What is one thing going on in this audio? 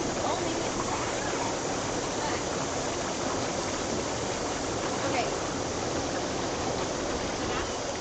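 Young women talk and laugh nearby outdoors.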